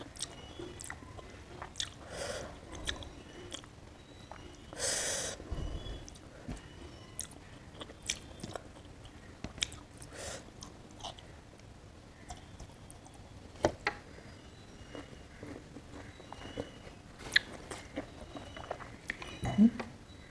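Fingers squish and mix rice on a plate close up.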